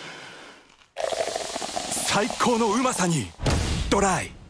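Beer pours from a can into a glass and foams.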